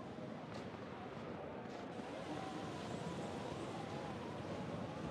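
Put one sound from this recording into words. Footsteps crunch slowly through snow.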